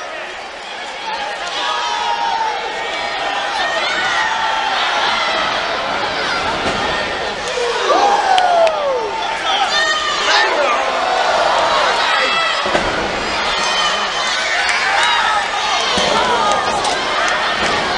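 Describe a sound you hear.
A crowd cheers and shouts loudly in a large echoing arena.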